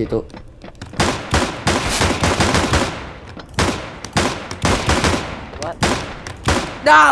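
Pistol shots fire in quick, loud bursts.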